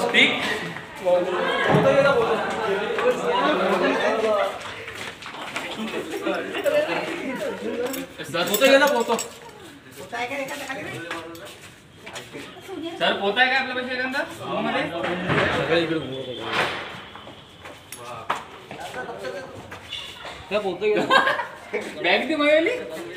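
Young men talk excitedly close by.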